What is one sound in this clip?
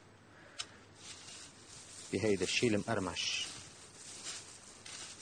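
Hands rustle dry breadcrumbs.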